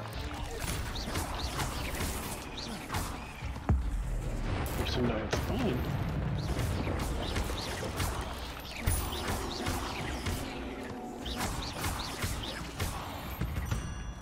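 Magic spells zap and crackle in quick bursts.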